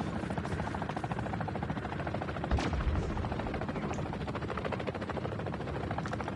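A gun fires rapidly in automatic bursts.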